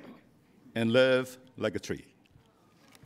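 An elderly man speaks calmly through a microphone in a large hall.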